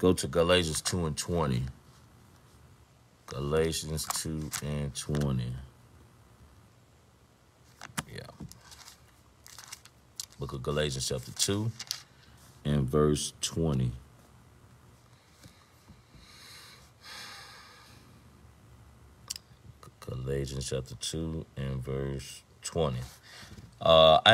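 A middle-aged man speaks calmly and close to a microphone, with pauses.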